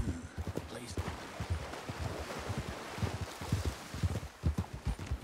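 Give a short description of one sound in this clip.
Water rushes over rocks in a stream.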